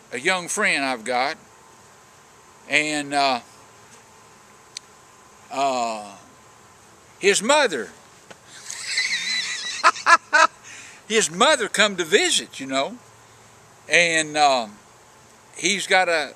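An older man talks calmly and close by, in short phrases with pauses.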